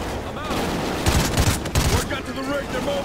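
An assault rifle fires a burst of shots.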